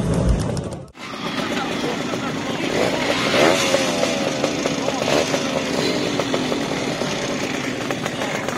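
Small motorcycle engines rev up sharply, over and over.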